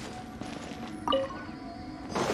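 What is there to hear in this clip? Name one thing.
A bright magical chime rings out briefly.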